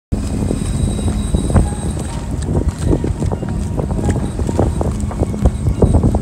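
Waves splash and slap against a boat's hull.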